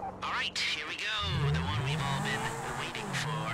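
A sports car engine revs loudly and roars as it speeds away.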